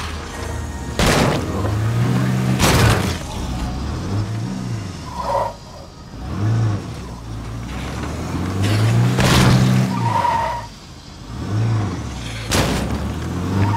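Loud thuds and crashes ring out.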